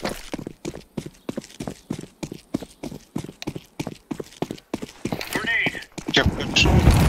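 Quick footsteps patter on hard stone.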